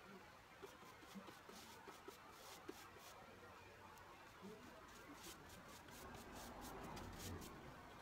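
A paintbrush strokes across painted wood.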